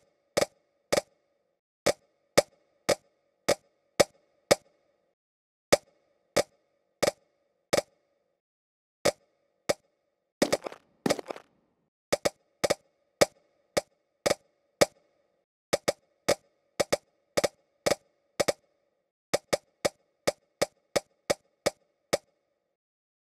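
Short bright pops ring out one after another as pieces of food stack up.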